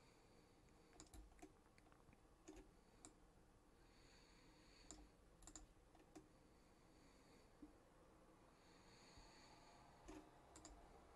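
A computer mouse clicks now and then, close by.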